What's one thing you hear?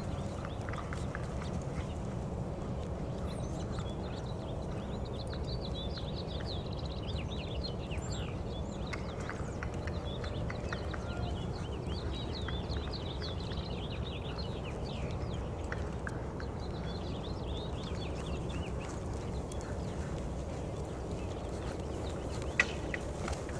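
A horse's hooves thud softly on dirt as it trots and lopes.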